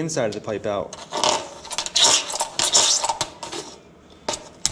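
A hand scrapes and rubs the inside of a cardboard tube.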